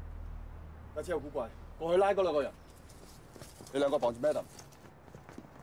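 A man speaks in a low urgent voice up close.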